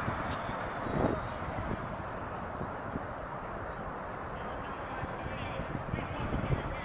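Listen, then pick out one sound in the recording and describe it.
Wind blows outdoors, rustling leaves.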